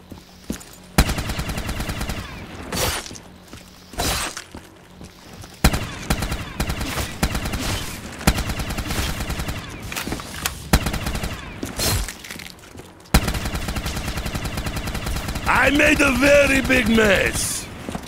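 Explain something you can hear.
A rapid-fire gun shoots in long, fast bursts.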